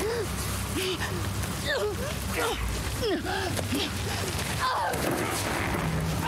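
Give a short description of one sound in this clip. A young woman groans and gasps in pain close by.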